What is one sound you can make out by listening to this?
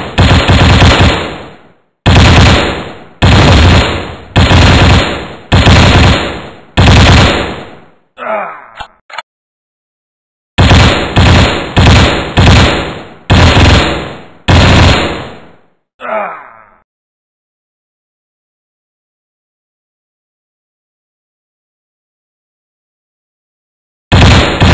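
Game gunfire sounds in loud repeated bursts that fade out.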